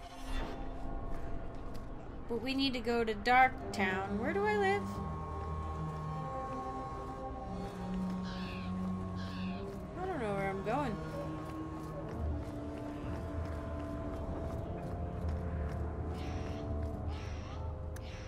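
Footsteps run across a stone pavement.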